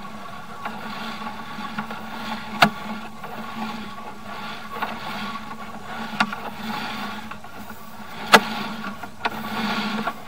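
Water trickles and splashes along the bottom of a pipe.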